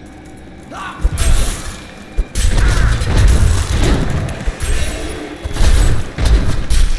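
Spells burst with loud booming blasts.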